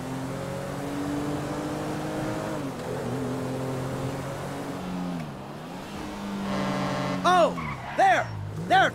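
A car engine hums steadily, dropping and rising in pitch as it shifts gears.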